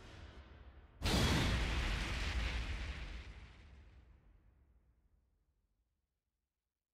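A booming impact hits and rings out slowly.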